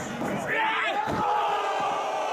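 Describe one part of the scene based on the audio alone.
A body slams heavily onto a hard floor.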